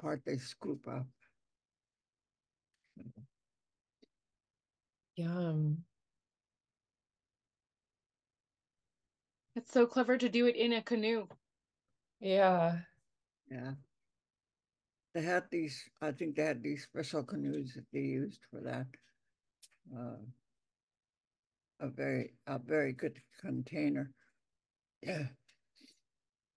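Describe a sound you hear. An elderly woman speaks calmly over an online call.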